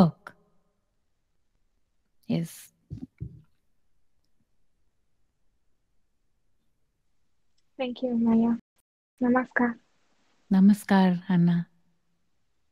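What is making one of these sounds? A woman speaks calmly and softly into a close microphone.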